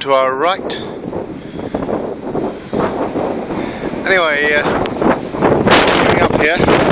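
Wind blows hard across an open outdoor space, rumbling against the microphone.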